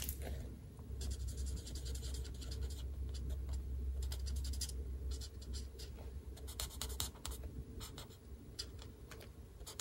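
A felt-tip marker scratches softly across paper in short strokes.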